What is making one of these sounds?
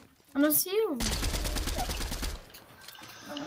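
A gun fires a short rapid burst.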